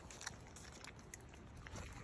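A raccoon chews food close by.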